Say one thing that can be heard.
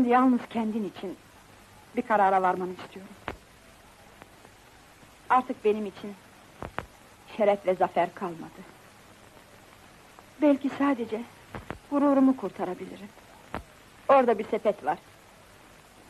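A woman speaks calmly and clearly nearby.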